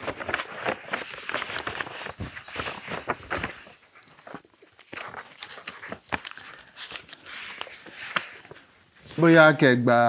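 Paper banknotes rustle as they are handled.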